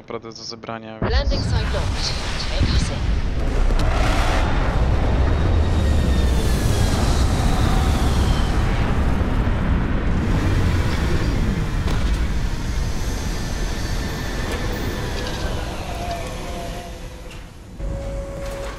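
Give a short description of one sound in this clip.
A spaceship engine roars low and steady as the ship descends.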